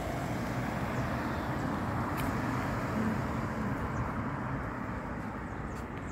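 A car drives past on an asphalt road and moves away.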